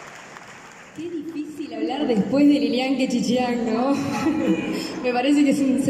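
A young woman speaks through a microphone in an echoing hall.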